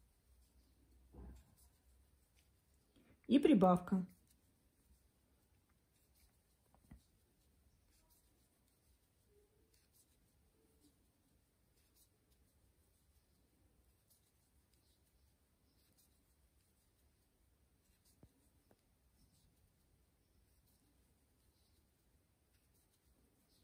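A crochet hook softly clicks and rustles through yarn.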